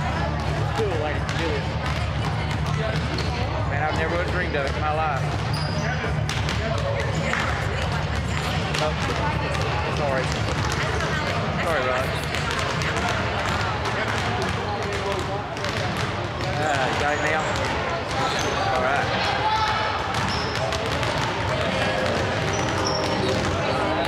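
Young boys call out and chatter in the echoing hall.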